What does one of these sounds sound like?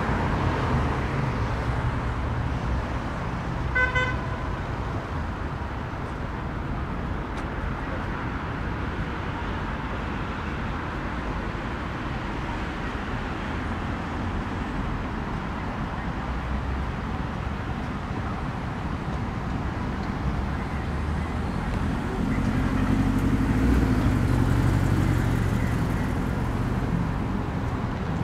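City traffic rumbles steadily in the distance outdoors.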